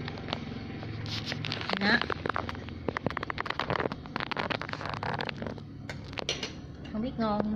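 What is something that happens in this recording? Chopsticks and a spoon clink against a bowl.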